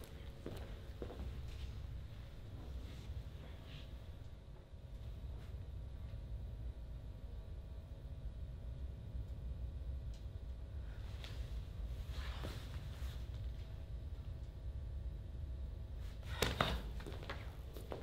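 Feet thump and shuffle on a floor.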